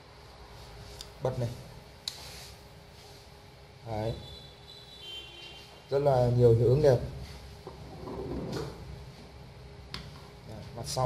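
Hands handle a small plastic device with light clicks and taps.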